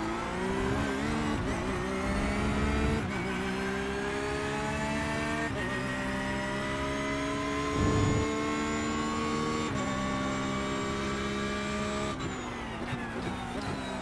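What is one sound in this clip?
A racing car engine revs high, rising through each gear and dropping sharply at each gear change.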